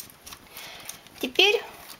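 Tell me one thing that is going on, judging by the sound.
Metal needles of a knitting machine click softly as hands move them.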